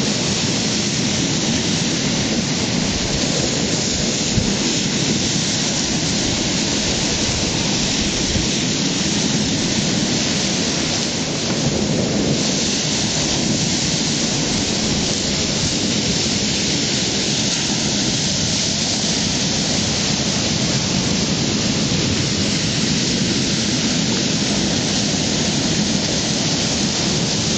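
Waves crash and roar against rocks close by.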